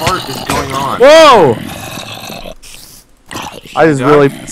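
A zombie groans in a low, wavering voice.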